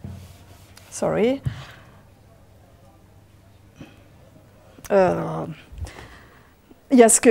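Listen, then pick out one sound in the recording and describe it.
A woman speaks in short phrases with pauses.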